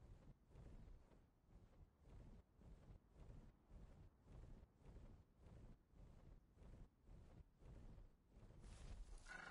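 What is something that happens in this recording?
A large bird beats its wings in a steady rhythm.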